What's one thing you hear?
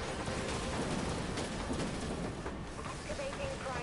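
Explosions boom and rumble.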